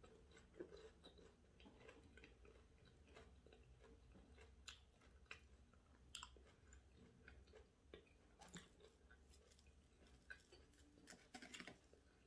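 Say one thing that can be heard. A woman chews food close to a microphone with soft wet smacking sounds.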